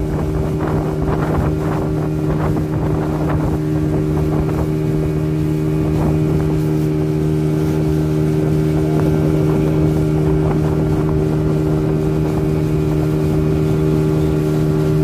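A boat's motor drones steadily.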